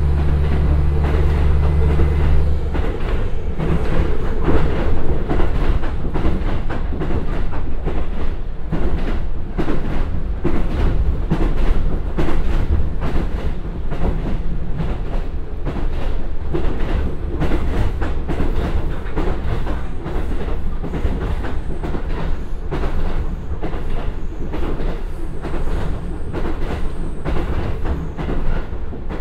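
A diesel train engine rumbles and hums steadily.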